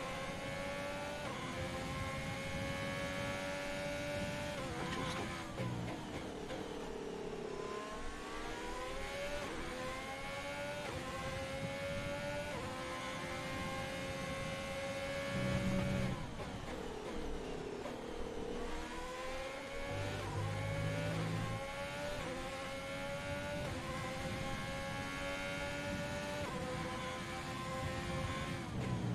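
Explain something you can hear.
A racing car engine screams at high revs, rising through the gears and dropping sharply under braking.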